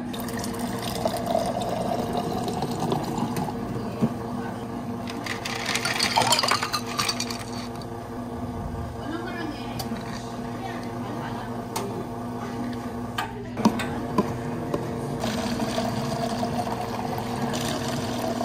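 Ice cubes clatter into a glass.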